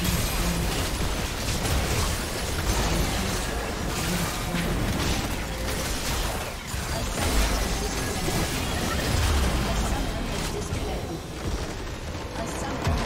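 Video game spells and blows crash and whoosh in a fast, busy fight.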